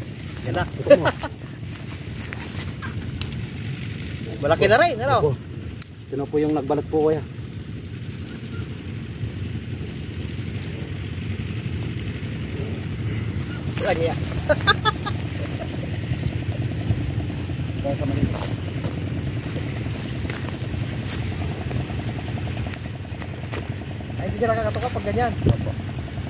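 A man talks in short bursts outdoors.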